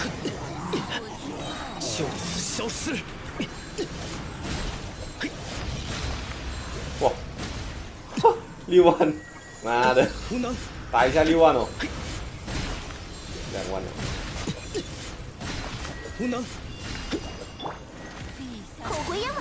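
Game battle effects whoosh and clash.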